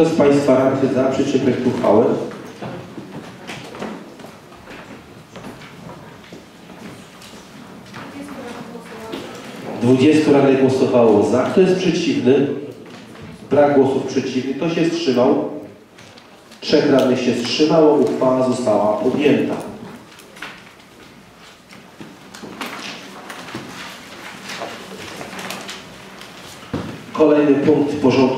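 A middle-aged man speaks calmly into a microphone, in bursts with pauses.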